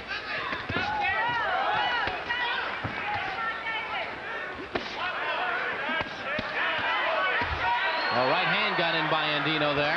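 Gloved punches thud against bodies.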